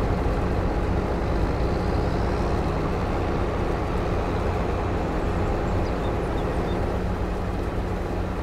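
Grain pours with a steady rushing hiss.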